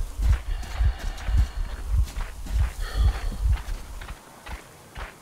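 Heavy footsteps crunch over snow at a steady walking pace.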